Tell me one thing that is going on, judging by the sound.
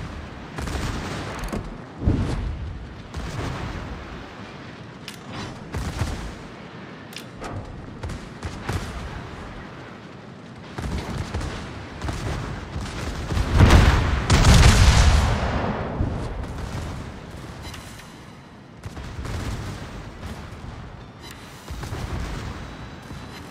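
Shells explode with deep rumbling blasts.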